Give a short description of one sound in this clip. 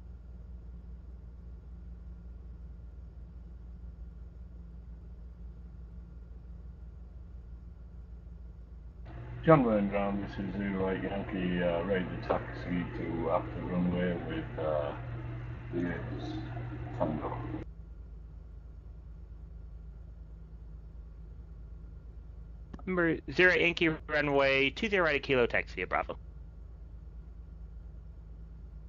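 An aircraft engine hums steadily at low idle.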